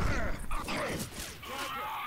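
A monster pounds heavily on a body.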